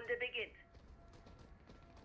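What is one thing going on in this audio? Gunshots crack in short bursts nearby.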